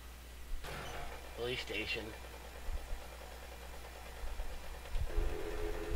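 A motorbike engine runs and revs.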